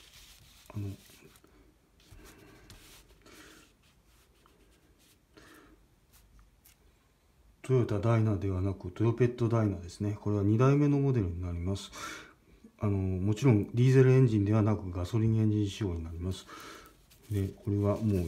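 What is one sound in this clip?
Glossy paper rustles softly as it is handled.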